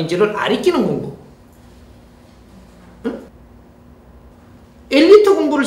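An elderly man speaks calmly and expressively into a close microphone, pausing between phrases.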